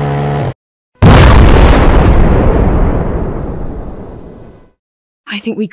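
A huge explosion booms and rumbles away.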